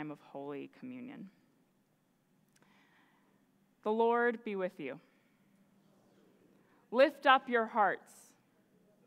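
A woman speaks calmly through a microphone, in short phrases with pauses.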